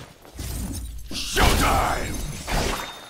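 A magic blast crackles and booms.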